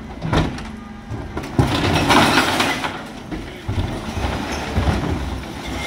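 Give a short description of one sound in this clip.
A bin lift whirs as it tips wheelie bins into a refuse truck.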